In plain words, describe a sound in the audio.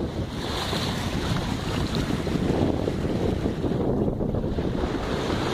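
Water rushes and splashes steadily past a moving boat.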